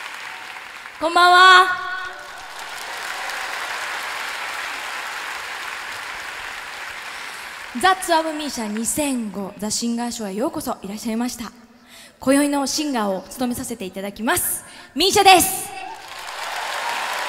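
A woman sings into a microphone in a large hall.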